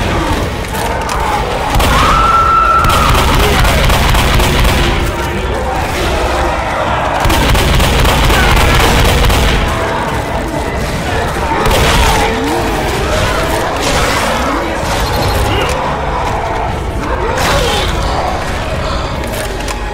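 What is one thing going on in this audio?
Shotgun blasts boom again and again.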